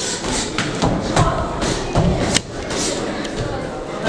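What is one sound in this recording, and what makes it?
Boxing gloves thud as punches land in quick bursts.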